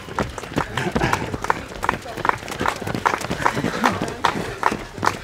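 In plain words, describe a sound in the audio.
A man cheers loudly as he passes.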